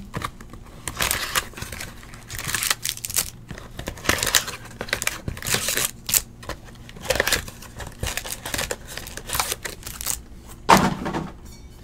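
Paper wrappers rustle as card packs are handled.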